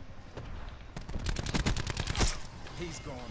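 Rapid gunfire rattles in a short burst.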